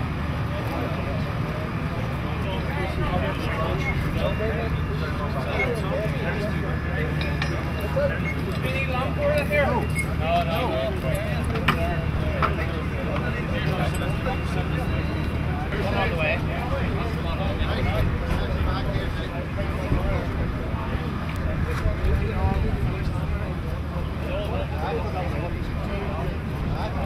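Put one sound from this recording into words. A hydraulic rescue tool's engine drones steadily.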